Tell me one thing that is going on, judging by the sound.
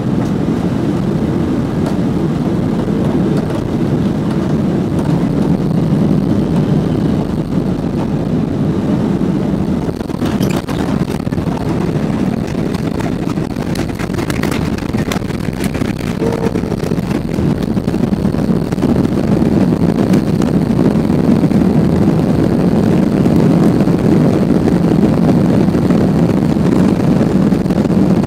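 Jet engines roar steadily, heard from inside a cabin.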